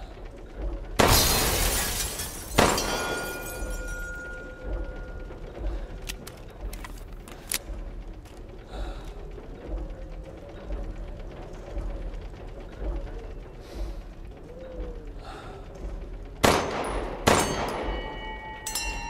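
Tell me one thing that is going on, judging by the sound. Pistol shots ring out with a loud echo.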